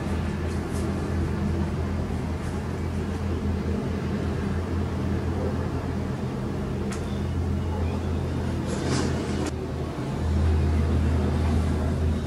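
A laptop keyboard clicks as someone types.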